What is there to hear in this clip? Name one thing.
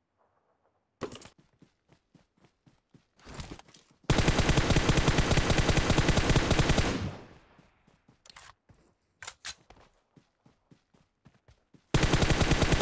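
Footsteps thud quickly over grass.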